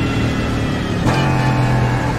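A race car's gears shift with a brief drop in engine pitch.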